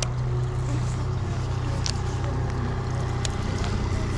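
A fishing reel clicks as a line is cast.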